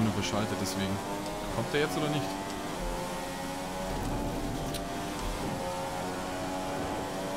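A racing car engine whines at high revs, rising in pitch and dropping briefly with each gear change.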